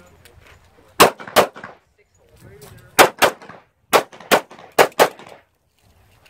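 Pistol shots crack in pairs outdoors, ringing briefly.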